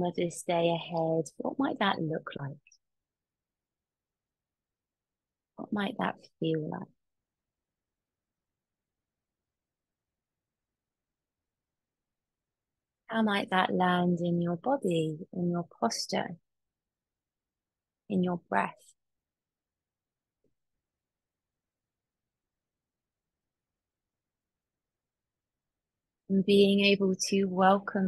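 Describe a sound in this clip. A young woman speaks calmly and slowly through an online call, pausing between phrases.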